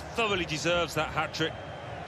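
A ball is struck hard with a foot.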